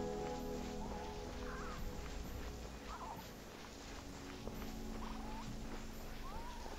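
Sand hisses softly as a figure slides down a dune.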